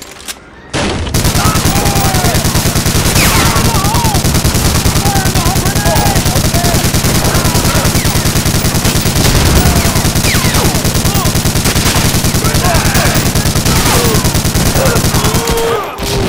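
A submachine gun fires long, rapid bursts.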